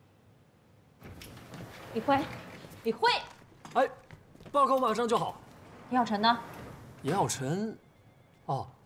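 A young woman speaks sharply nearby.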